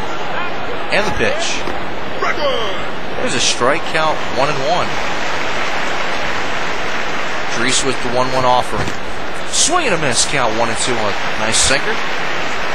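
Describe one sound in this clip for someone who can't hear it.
A baseball smacks into a catcher's mitt several times.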